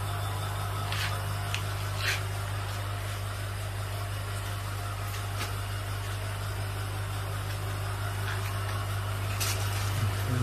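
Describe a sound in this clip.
Water splashes as a hand moves in a fish tank.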